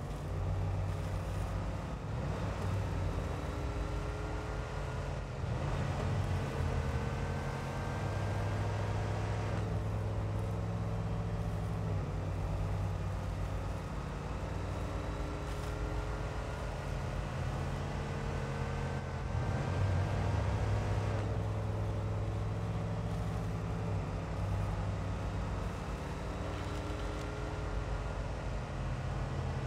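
A truck engine rumbles low and revs up and down as it crawls over rough ground.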